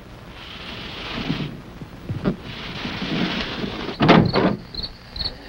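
A man scuffles and thumps heavily against a door.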